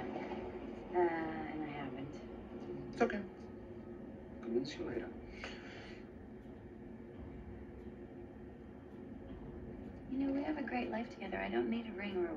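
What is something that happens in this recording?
A woman speaks quietly through a television speaker.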